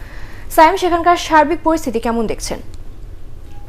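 A woman speaks calmly into a microphone, reading out.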